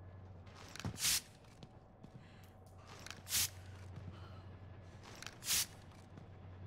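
Knife blows thud against a body.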